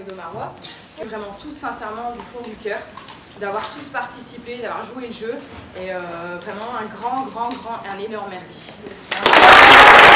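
A woman speaks calmly to a crowd.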